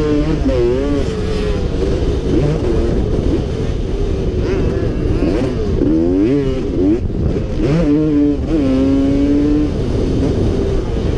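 A motorcycle engine revs hard, rising and falling in pitch as the rider shifts gears.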